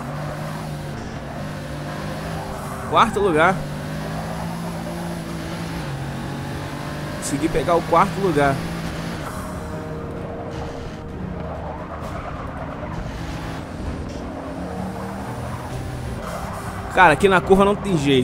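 A racing car engine roars steadily, rising and falling as gears shift.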